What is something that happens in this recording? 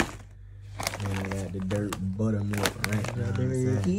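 Snack bags crinkle as a hand handles them.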